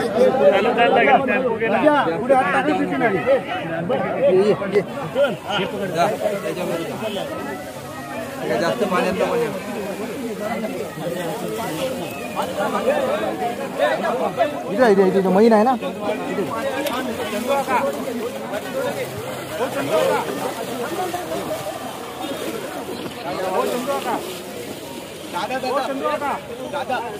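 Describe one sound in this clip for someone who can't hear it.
A crowd of men and boys talks and calls out loudly close by.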